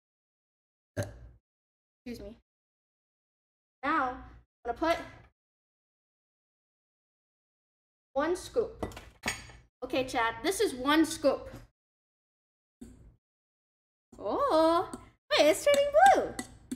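A young woman talks with animation, close to a microphone, in short bursts.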